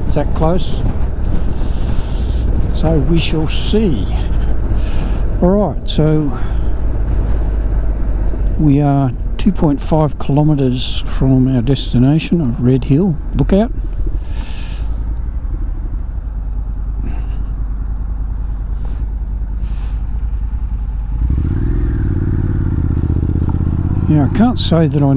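A motorcycle engine rumbles steadily as the bike rides along.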